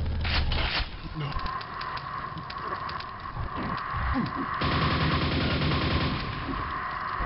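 A video game nailgun fires in rapid bursts.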